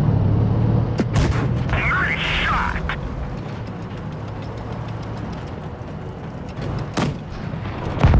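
A tank gun fires with a sharp boom.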